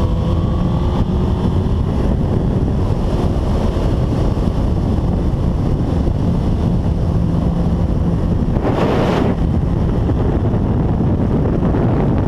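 Wind buffets loudly against a speeding rider.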